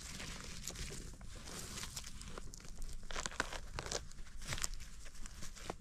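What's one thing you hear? Dry forest litter rustles and crackles under a hand.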